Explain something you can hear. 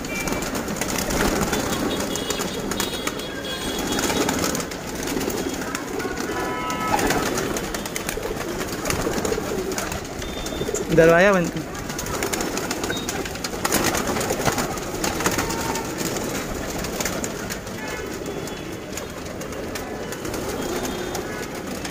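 Pigeons flap their wings in quick bursts.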